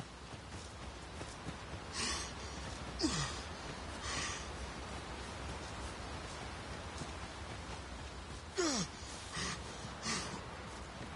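Footsteps rustle through grass and crunch on a dirt path.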